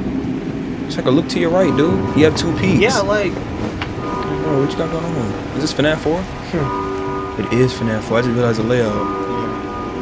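A second young man talks and reacts over an online call.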